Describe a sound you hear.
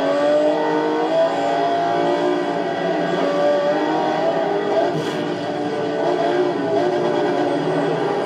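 A racing car engine roars and shifts pitch as the car speeds along.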